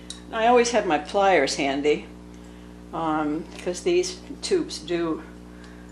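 Pliers grip and twist the cap of a paint tube.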